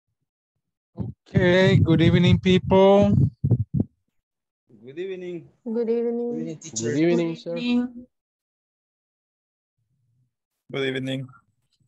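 A man speaks over an online call.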